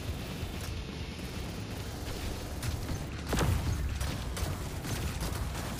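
Heavy mechanical footsteps thud and clank.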